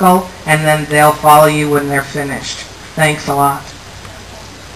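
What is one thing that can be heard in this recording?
A man speaks loudly into a microphone through a loudspeaker.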